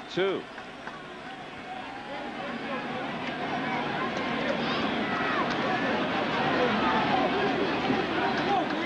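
A large stadium crowd cheers and roars, growing louder.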